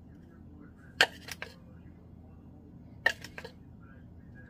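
A spoon taps against a plastic cup.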